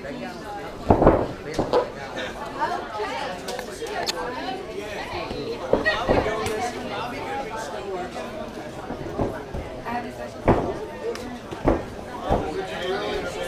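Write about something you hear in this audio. Bodies thump on a padded mat.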